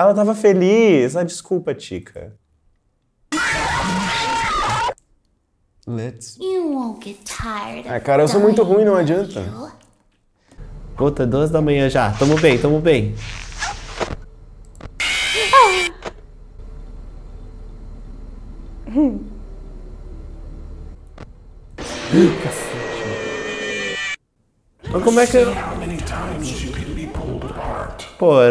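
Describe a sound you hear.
A young man talks with animation, close by.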